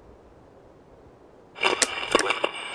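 A radio switches on with a click.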